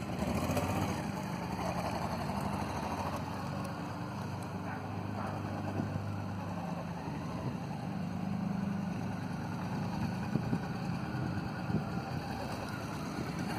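A motorcycle engine hums steadily as the motorcycle circles slowly, its pitch rising and falling with the throttle.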